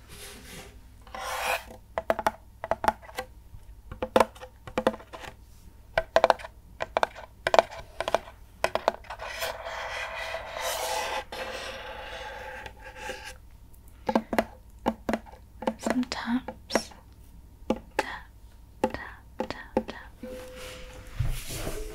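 Fingernails tap and scratch on a hollow wooden ukulele body, close up.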